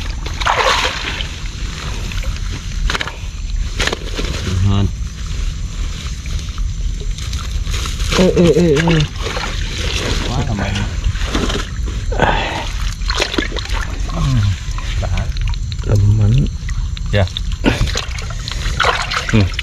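Hands squelch and dig through wet mud.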